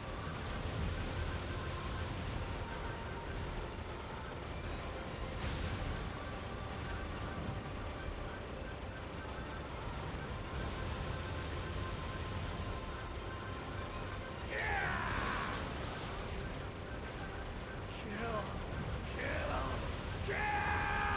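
Swords slash and clash in quick bursts.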